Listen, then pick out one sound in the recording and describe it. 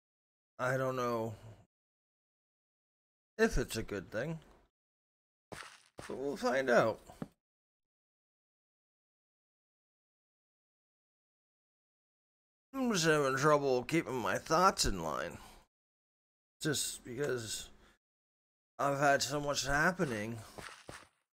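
A middle-aged man talks casually into a close microphone, in bursts with pauses.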